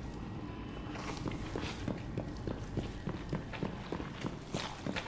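Heavy footsteps clank on a metal floor at a steady walking pace.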